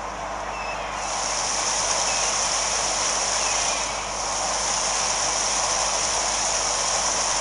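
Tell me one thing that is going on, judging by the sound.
Water splashes beneath a seaplane's floats.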